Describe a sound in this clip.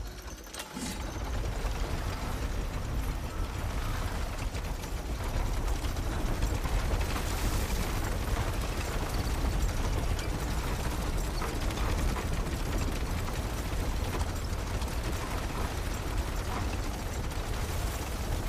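Water laps against a wooden boat as it moves along.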